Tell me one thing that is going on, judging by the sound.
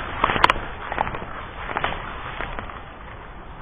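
Tall grass rustles and brushes close to the microphone.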